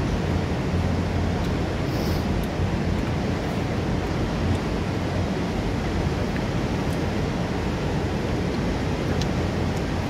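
A waterfall roars steadily, crashing onto rocks below.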